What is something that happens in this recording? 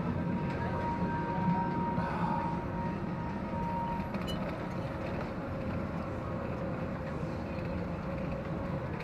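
A roller coaster chain lift clanks and rattles steadily as the car climbs.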